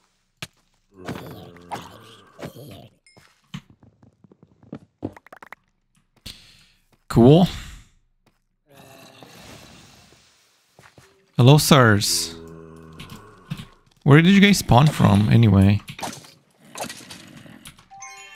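A sword hits with sharp smacks.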